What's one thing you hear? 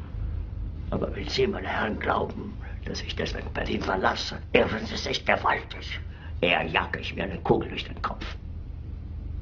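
A middle-aged man speaks angrily and loudly.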